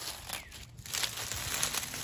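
Pruning shears snip a stem.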